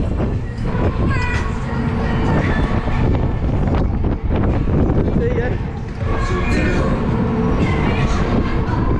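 Wind buffets loudly past a fast-spinning fairground ride.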